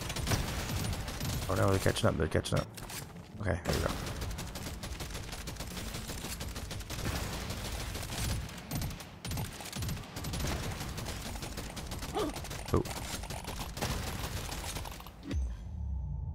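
Rapid gunfire and blasts crackle without a break.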